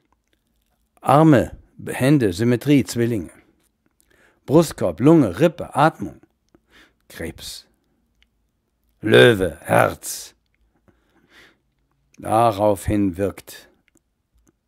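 A man speaks calmly and close up, in short phrases with pauses.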